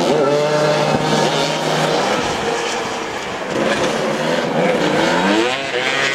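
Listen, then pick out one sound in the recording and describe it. Motorcycle engines rev and whine loudly nearby.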